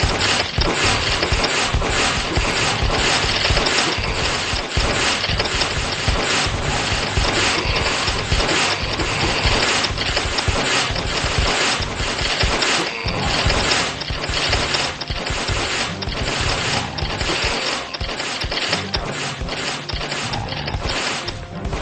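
Small explosions pop as enemies are destroyed.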